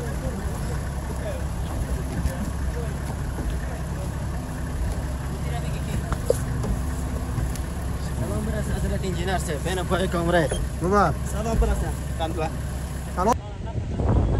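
A bus engine idles with a low rumble.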